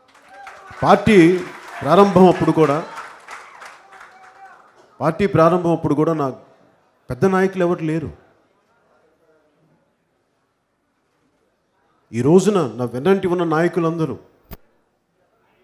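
A man speaks forcefully through a microphone and loudspeakers, in pauses between phrases.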